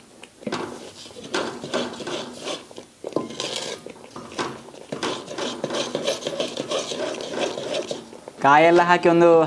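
A wooden spoon scrapes and stirs a thick mixture in a metal pot.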